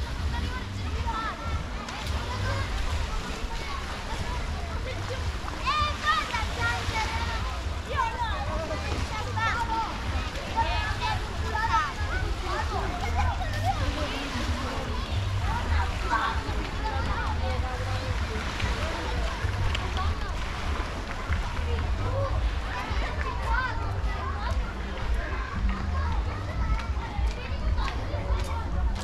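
A crowd of adults and children chatter and call out nearby, outdoors.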